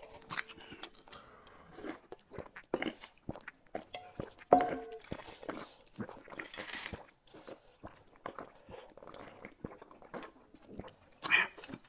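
A man slurps soup loudly from a bowl.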